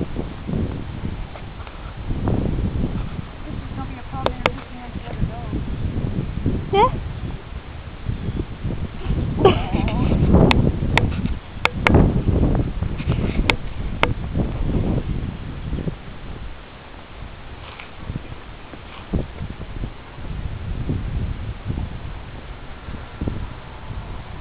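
Puppies scuffle and growl playfully on grass.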